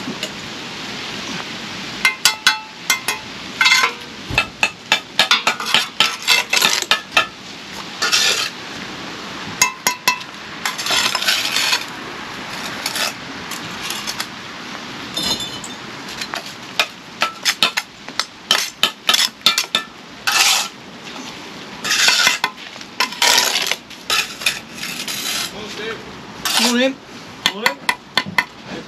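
A brick trowel scrapes mortar across concrete blocks.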